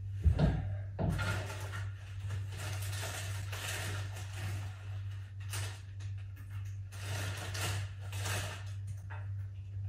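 A candy wrapper crinkles.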